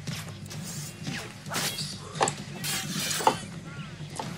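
Swords clash in a game fight.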